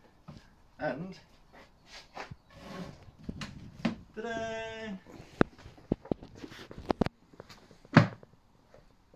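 A wooden bench knocks and clatters as it is moved and adjusted.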